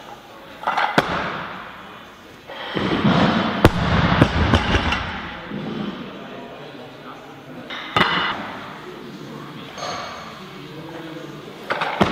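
Metal weight plates clank sharply on a barbell.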